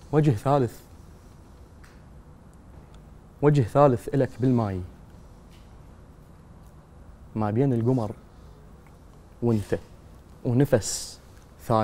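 A young man speaks calmly into a microphone in short phrases with pauses.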